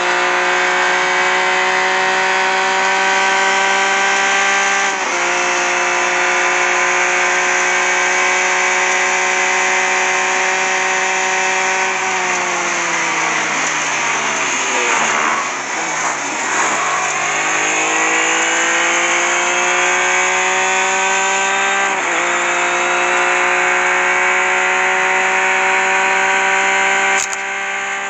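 A race car engine whines at high revs, drops in pitch as the car brakes for a corner, then climbs again through the gears.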